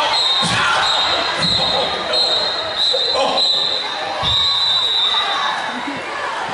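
A crowd chatters and murmurs.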